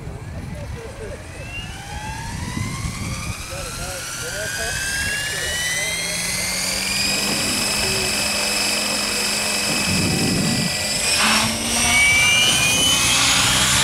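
A model helicopter's rotor blades whir and buzz.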